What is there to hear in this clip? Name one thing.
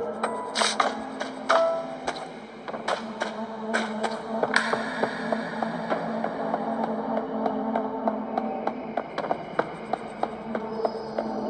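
Fingers tap lightly on a tablet's touchscreen.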